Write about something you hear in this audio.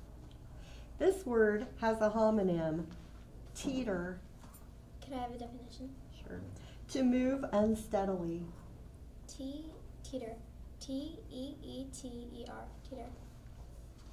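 A young girl speaks clearly into a microphone, close by.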